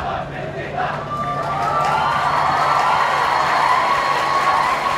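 A group of young men shouts together in a cheer.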